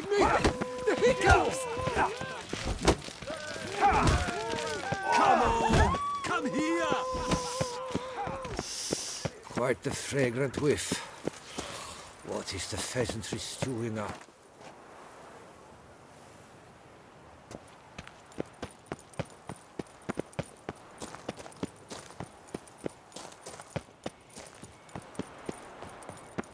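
Footsteps tread on stone at a steady walking pace.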